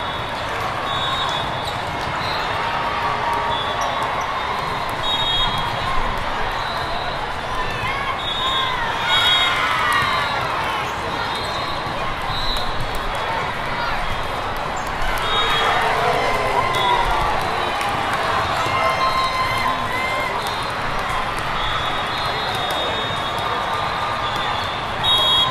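Sneakers squeak sharply on a court floor.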